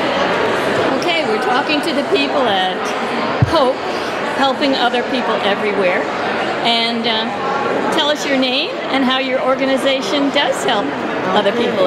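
A woman speaks calmly and warmly, close by.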